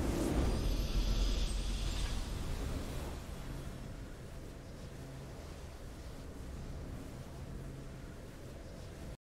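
A triumphant game fanfare swells and then fades away.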